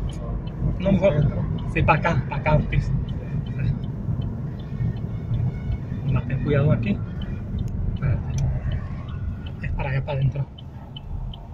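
A car engine hums as it drives along a road.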